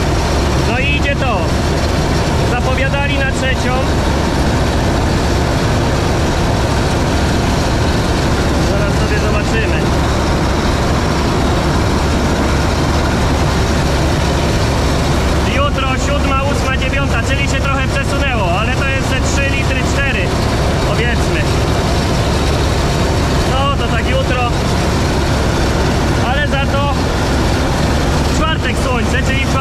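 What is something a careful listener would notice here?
A tractor engine drones loudly and steadily close by.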